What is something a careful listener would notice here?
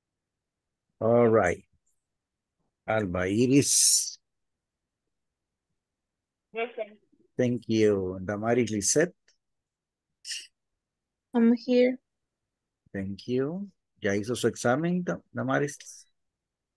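A man speaks calmly through an online call, in bursts with pauses.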